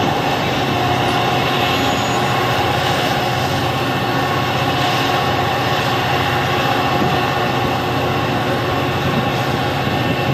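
A passenger train rumbles steadily past close by, its wheels clattering on the rails.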